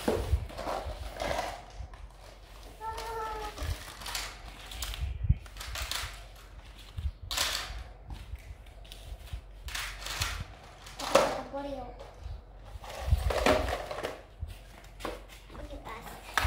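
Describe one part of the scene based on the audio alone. Plastic toys clatter and knock.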